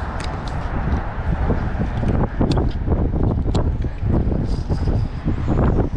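A fishing reel clicks as it is handled.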